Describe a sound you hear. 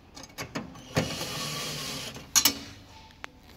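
A power screwdriver whirs briefly.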